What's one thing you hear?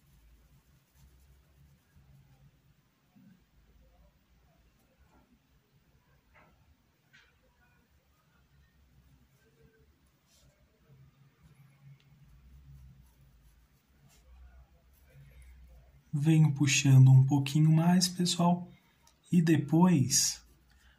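A paintbrush strokes softly across cloth.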